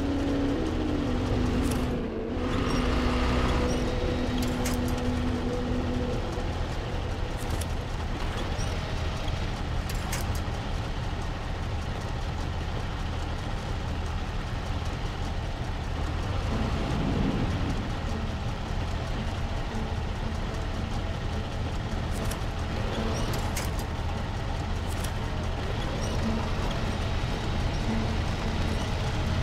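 A heavy truck engine rumbles and strains steadily.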